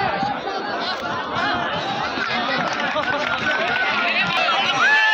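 A large outdoor crowd chatters and shouts with excitement.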